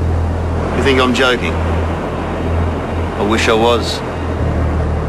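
A man speaks in a strained voice close by.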